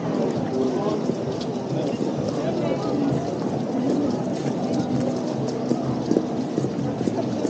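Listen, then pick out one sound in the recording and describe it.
Footsteps shuffle on cobblestones.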